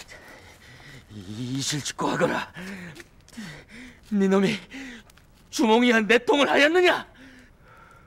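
A man speaks with gleeful, mocking laughter close by.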